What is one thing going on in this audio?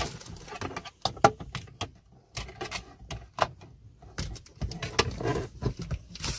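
Plastic clicks and rattles as a sun visor panel is handled.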